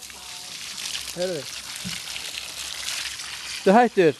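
Water sprays from a hose and patters onto stones.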